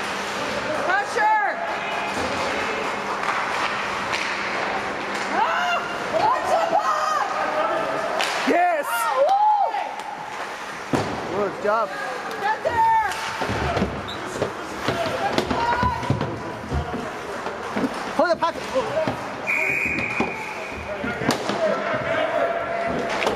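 Spectators and players shout and call out in a large echoing rink.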